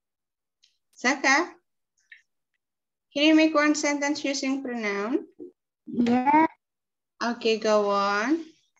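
A young girl speaks calmly over an online call.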